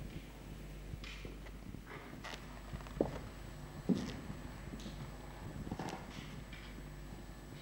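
Footsteps thud on hollow wooden boards in a large echoing hall.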